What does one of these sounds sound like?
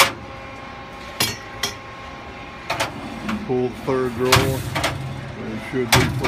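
A metal drawer slides out on its rails.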